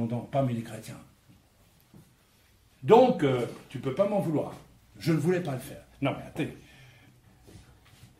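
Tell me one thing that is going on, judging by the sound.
A middle-aged man speaks calmly, close up.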